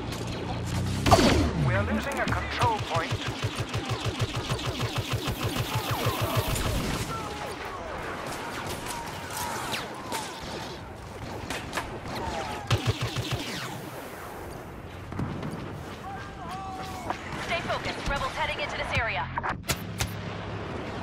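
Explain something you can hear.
Rapid laser rifle shots fire in quick bursts.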